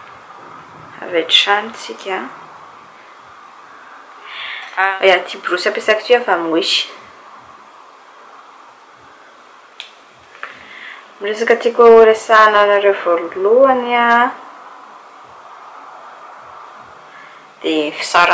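A young woman talks calmly close to a microphone, in short phrases with pauses.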